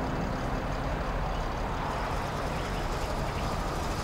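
A bus engine rumbles as a bus drives past.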